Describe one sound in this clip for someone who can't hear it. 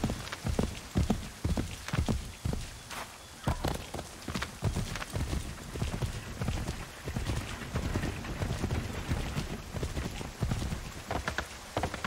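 A horse's hooves thud in a quick gallop.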